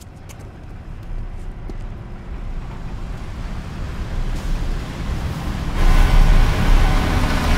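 A truck engine rumbles, growing louder as the truck approaches.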